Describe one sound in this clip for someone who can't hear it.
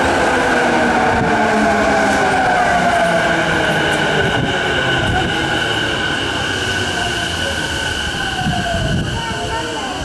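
An electric train whines down in pitch as it brakes to a stop.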